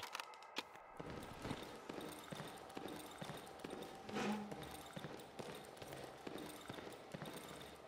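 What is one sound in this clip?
Footsteps patter steadily.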